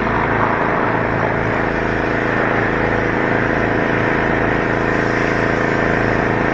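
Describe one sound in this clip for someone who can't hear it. A pressure washer motor drones steadily nearby.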